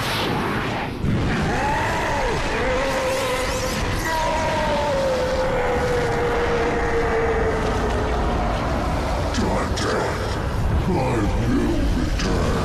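A powerful energy blast roars and crackles steadily.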